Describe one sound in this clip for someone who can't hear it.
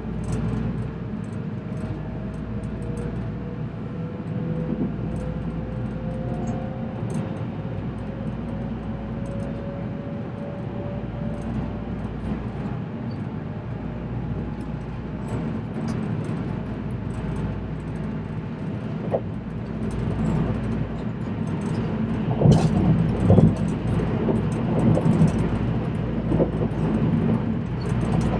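Train wheels clatter and squeal over rail joints.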